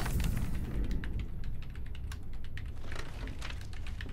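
Paper rustles as pages of a magazine are turned.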